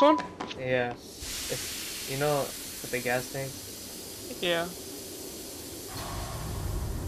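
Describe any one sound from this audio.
Gas hisses loudly as it sprays out.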